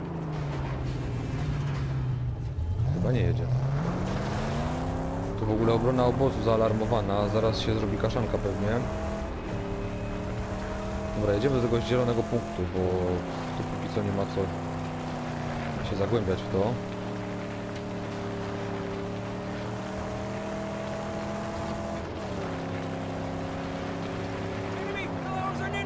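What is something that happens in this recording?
A car engine roars, revving up and down as the car speeds along.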